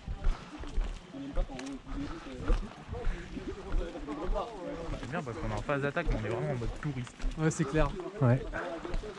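Boots crunch steadily on a dirt path.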